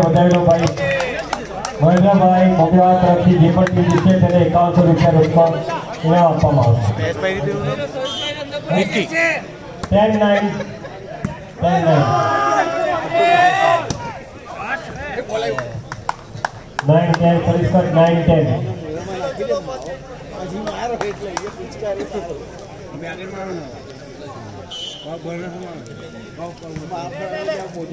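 Men shout to each other loudly outdoors.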